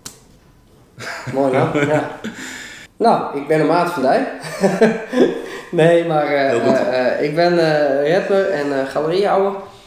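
A man laughs and talks in conversation.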